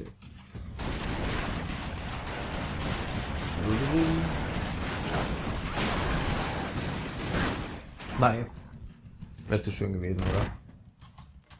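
Gunfire rattles rapidly in a video game.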